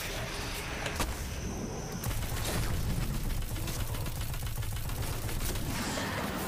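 An explosion bursts with a crackling roar.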